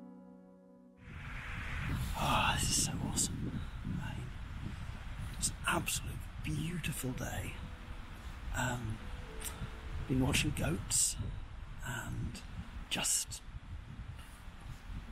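An adult man talks with animation close to the microphone.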